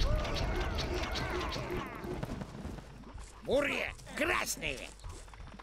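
Fiery blasts burst and crackle.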